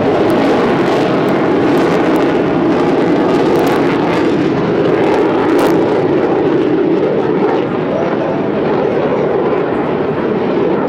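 A jet engine roars loudly and steadily overhead.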